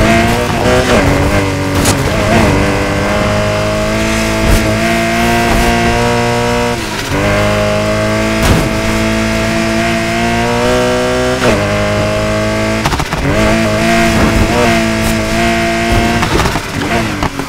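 A sports car engine roars at high revs, shifting gears as it speeds up.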